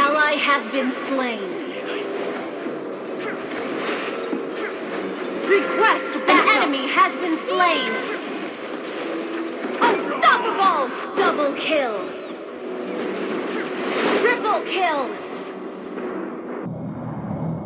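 Game spells crackle and blast in a fast battle.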